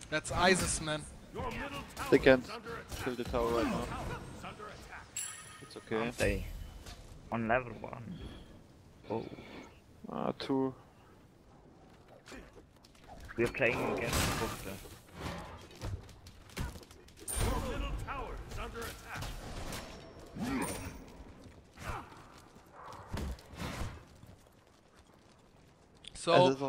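A man talks with animation into a close microphone.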